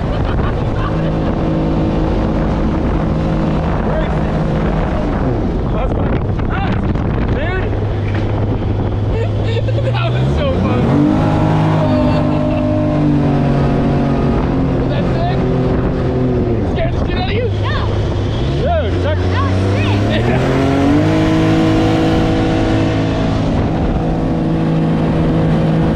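Water rushes and splashes against a moving boat's hull.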